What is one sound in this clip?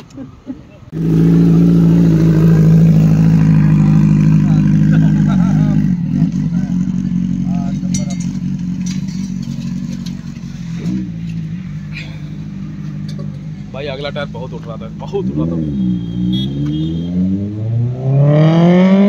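A motorcycle engine idles loudly nearby.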